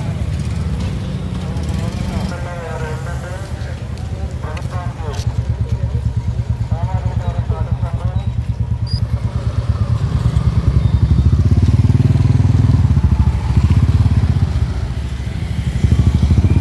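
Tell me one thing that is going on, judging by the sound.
Scooter engines hum steadily as they ride slowly past.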